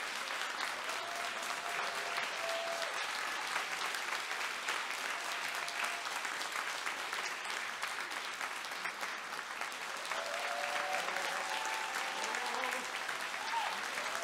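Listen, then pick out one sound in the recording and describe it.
A young woman sings faintly in a large echoing hall.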